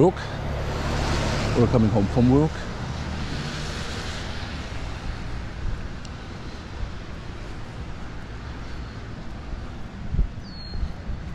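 Footsteps tap on a wet pavement outdoors.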